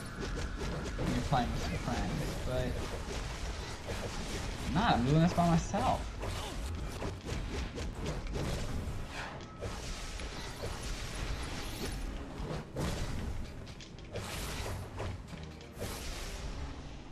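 Game combat effects crash, zap and clang.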